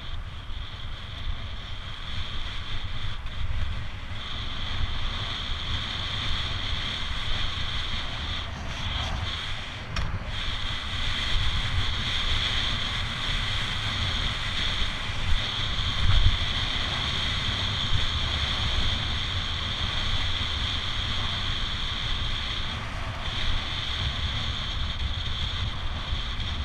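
Bicycle tyres hum steadily on a road.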